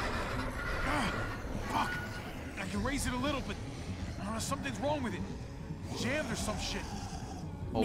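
A man speaks in a strained, frustrated voice close by.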